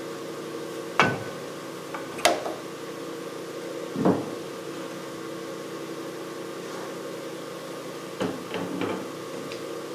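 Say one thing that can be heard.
Metal parts clank and knock against each other.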